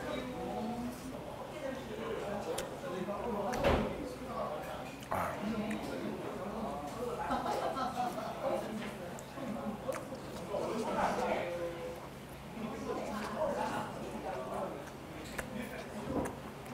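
A man chews food noisily and slurps, close to a microphone.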